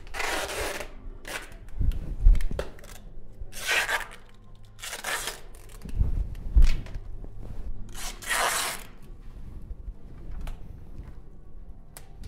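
A person crawls and shuffles over concrete steps.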